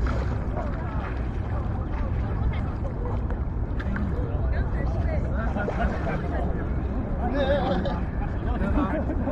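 A group of young women shout and laugh excitedly close by.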